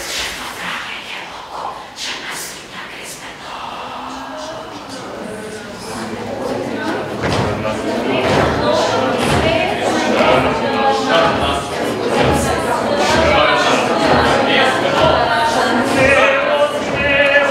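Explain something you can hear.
A mixed choir of young voices sings together in a large echoing hall, growing louder.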